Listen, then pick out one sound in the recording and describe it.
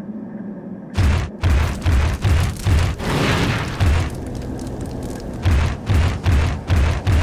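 A large beast's feet thud heavily on stone in quick running steps.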